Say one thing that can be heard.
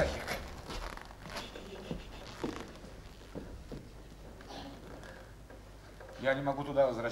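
An older man shouts on a stage.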